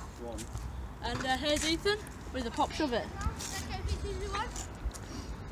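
A boy speaks casually close by.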